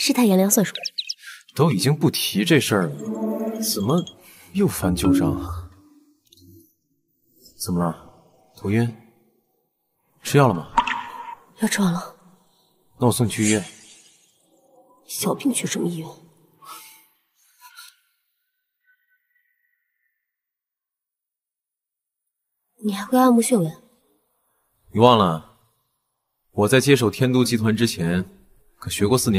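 A young woman speaks softly and wearily close by.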